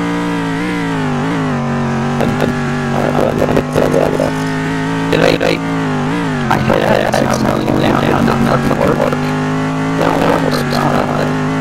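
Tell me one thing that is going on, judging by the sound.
A racing car engine drones loudly at high revs, dipping briefly as it shifts gears.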